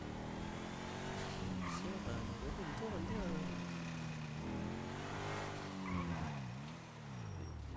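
A car engine roars and revs up and down as the car speeds along.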